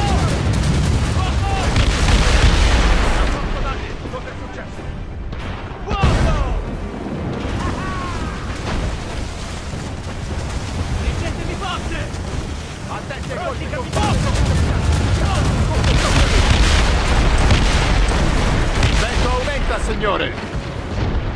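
Waves crash and rush against a ship's hull.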